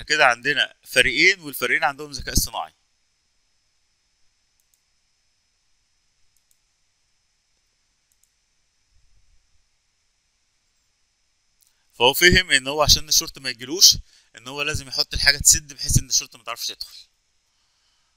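A man speaks calmly and close to a microphone, in short bursts with long pauses.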